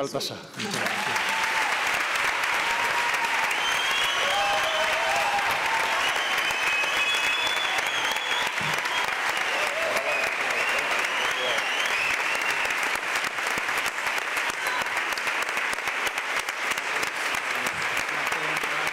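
A large audience applauds steadily in a big echoing hall.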